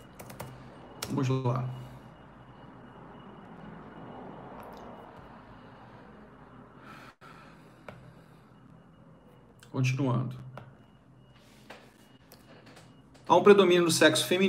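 A middle-aged man speaks calmly in short bursts into a close microphone.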